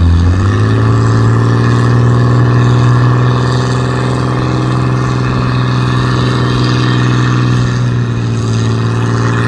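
An antique farm tractor engine roars under heavy load while pulling a weight-transfer sled.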